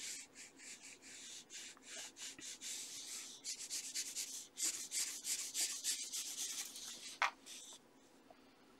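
Paper tissue rubs briskly across drawing paper in quick strokes.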